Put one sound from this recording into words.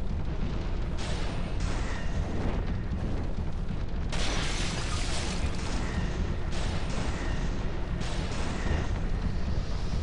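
A magic spell bursts with a sharp whoosh, several times.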